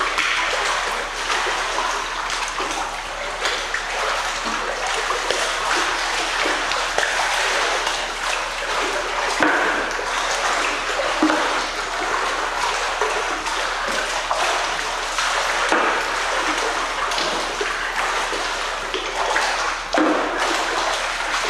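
Water churns with a steady bubbling rush, echoing in a large indoor hall.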